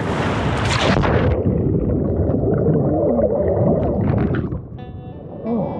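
Water rushes and rumbles, muffled, as if heard underwater.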